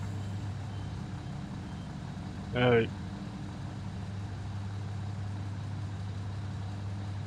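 A diesel train engine hums steadily at idle.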